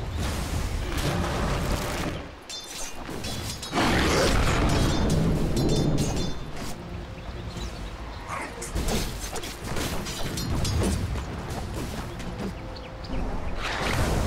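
Sword blows and spell blasts clash in a rapid game fight.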